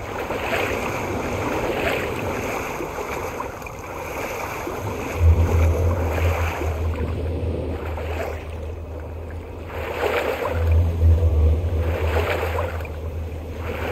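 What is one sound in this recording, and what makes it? Water sloshes as a person wades slowly.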